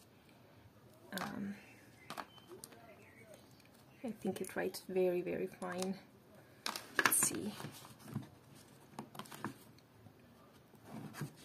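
Cardboard and paper rustle and tap as they are handled up close.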